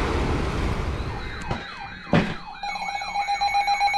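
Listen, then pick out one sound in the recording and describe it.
A weather radio sounds a loud warbling alarm tone.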